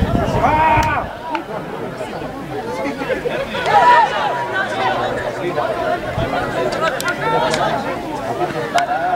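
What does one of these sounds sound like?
Young men shout calls to each other across an open field.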